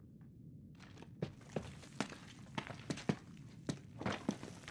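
Footsteps thud on a wooden floor and stairs.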